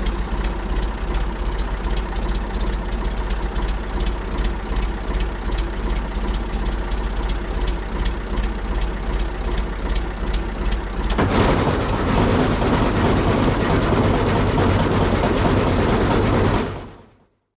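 A tractor engine idles steadily close by.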